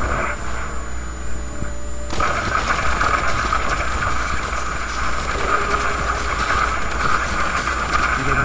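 Low rumbling ambience drones steadily.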